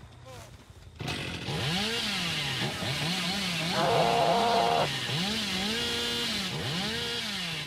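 A chainsaw engine revs up and down loudly.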